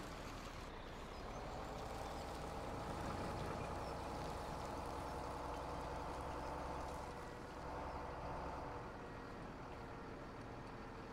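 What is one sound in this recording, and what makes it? A truck engine revs up and pulls away.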